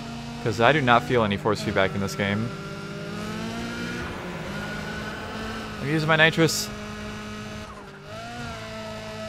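A car engine hums steadily and revs.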